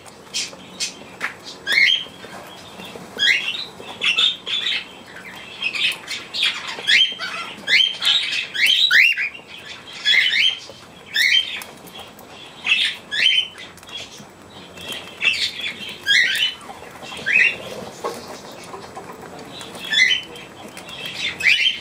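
Budgies chirp and twitter in the background.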